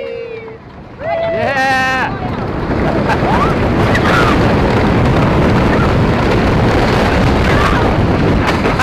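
A roller coaster train roars and rattles down the track at speed.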